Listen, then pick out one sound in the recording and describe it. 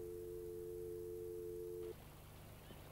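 A telephone tone hums steadily, then cuts off abruptly.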